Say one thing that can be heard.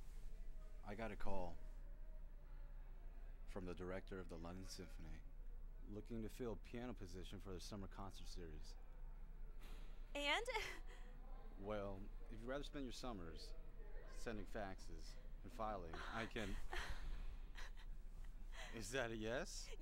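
A young man speaks quietly up close.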